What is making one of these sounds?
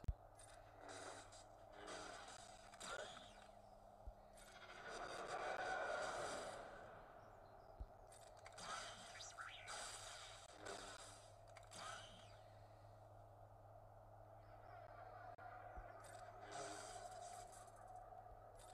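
Lightsabers hum and clash.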